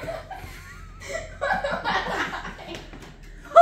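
A boy laughs loudly close by.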